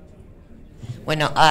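A woman speaks into a microphone over loudspeakers.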